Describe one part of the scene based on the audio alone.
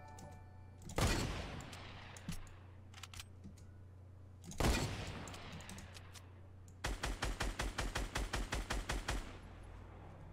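A rifle fires a string of shots in a video game.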